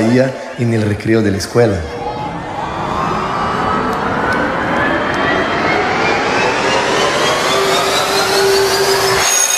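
Music plays loudly through a loudspeaker system.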